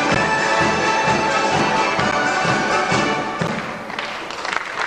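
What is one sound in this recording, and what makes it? A folk ensemble plays and sings loudly in a large hall.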